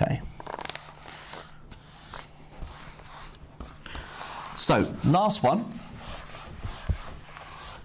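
An eraser wipes across a whiteboard with a soft rubbing.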